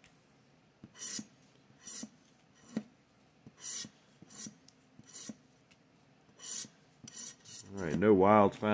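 A scraper scratches rapidly across a card.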